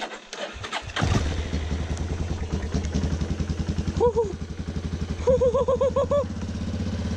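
A small engine starts and runs with a steady, uneven rumble.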